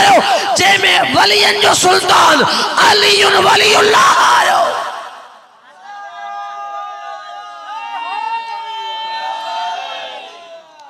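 A young man chants loudly and melodically into a microphone over a loudspeaker.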